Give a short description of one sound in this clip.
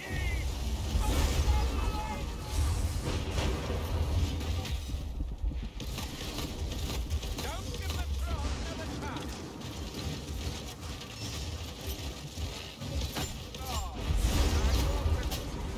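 Lightning magic crackles and zaps in bursts.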